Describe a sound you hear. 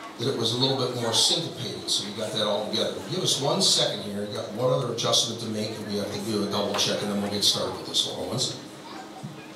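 A school band plays a lively tune in a large hall.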